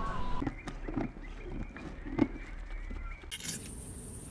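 A cow tears and chews grass close by.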